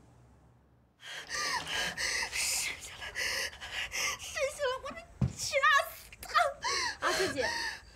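A woman cries out and wails in distress.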